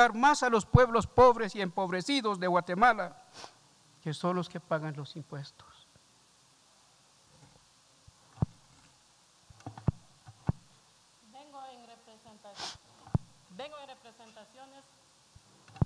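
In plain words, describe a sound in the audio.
An elderly man reads out calmly into a microphone.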